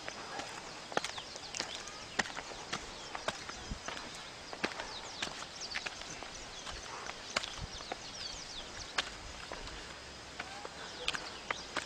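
Footsteps scuff on bare rock.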